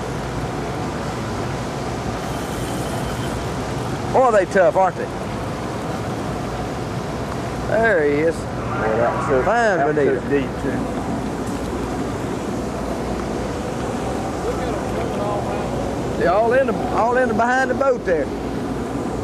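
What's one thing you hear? Water sloshes against the side of a boat.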